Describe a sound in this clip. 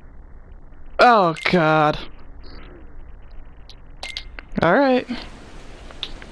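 A menu chime rings as a page turns.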